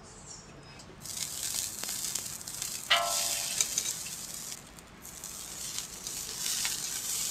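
Fish sizzles and hisses on a hot grill.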